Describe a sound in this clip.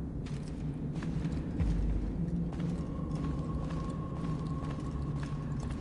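A creaking cart rumbles along.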